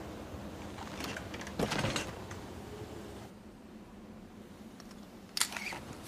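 A seatbelt buckle clicks.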